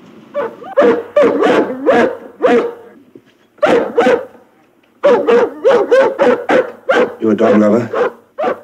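A man speaks in a low, urgent voice nearby.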